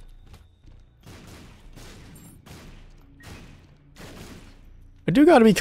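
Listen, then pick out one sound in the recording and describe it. Video game shots pop in quick bursts.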